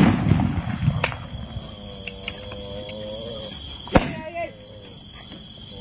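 Fireworks crackle and pop.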